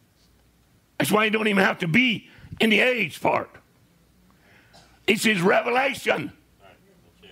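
An elderly man speaks with animation in short, loud bursts.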